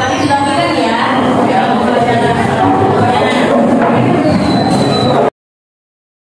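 Many teenagers chatter together in a room.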